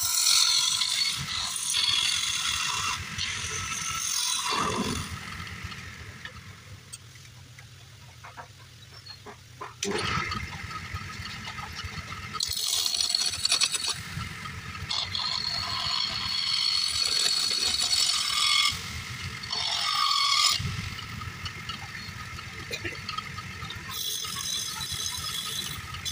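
A chisel scrapes and shaves spinning wood with a rough hiss.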